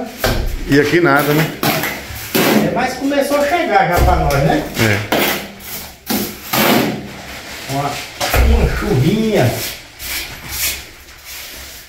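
A trowel scrapes wet plaster across a wall.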